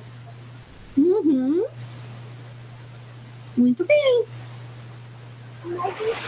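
A middle-aged woman speaks with animation through an online call.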